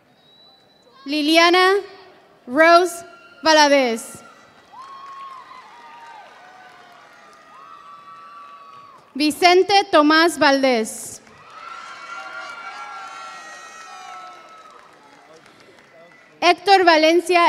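A crowd of people cheers and shouts loudly in a large echoing hall.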